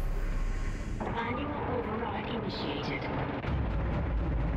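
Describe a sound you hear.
A man talks through a headset microphone.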